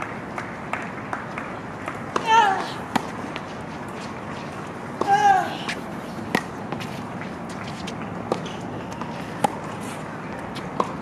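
Tennis balls are struck with sharp pops of rackets back and forth.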